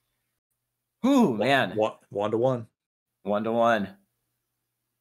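A young man speaks with animation over an online call.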